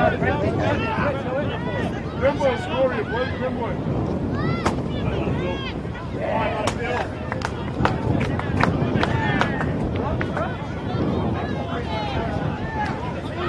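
Young players shout and call to each other on an open field.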